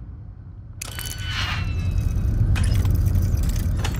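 A safe door clicks open.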